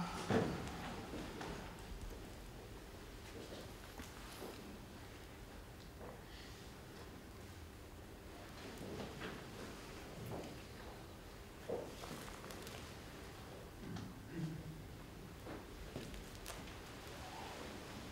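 Dry leaves and twigs rustle softly in a man's hands.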